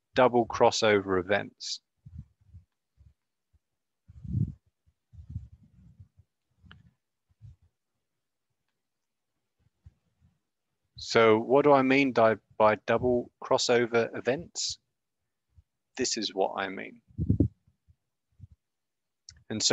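A man speaks calmly into a close microphone, explaining with pauses.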